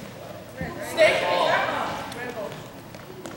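Spectators cheer and shout in an echoing gym.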